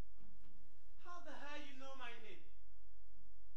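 A young woman speaks loudly at a distance.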